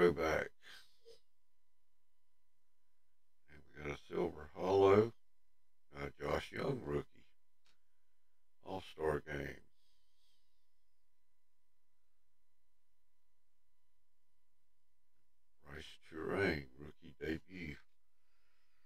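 An elderly man talks calmly into a microphone.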